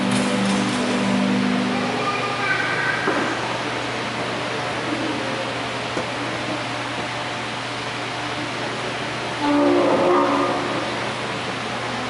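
A man chants through a loudspeaker in a large echoing hall.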